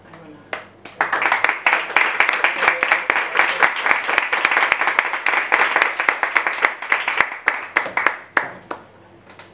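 A woman claps her hands rapidly.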